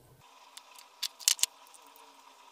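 Pliers snip through a wire with sharp clicks.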